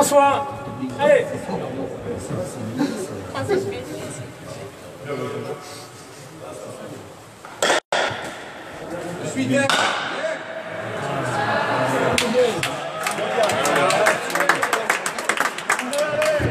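A ball slaps against a wall in an echoing hall.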